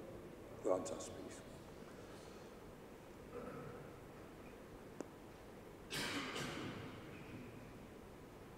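A man speaks briefly and far off in a large echoing hall.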